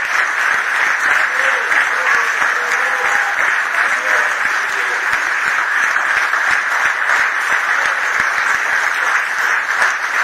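A large crowd applauds in a hall.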